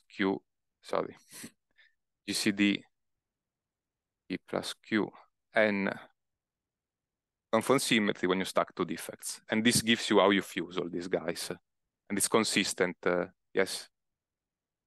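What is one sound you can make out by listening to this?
A young man speaks calmly through a clip-on microphone.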